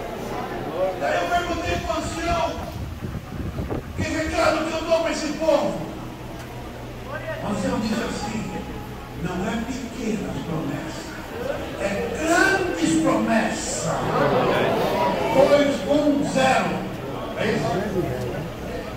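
Men murmur and talk nearby.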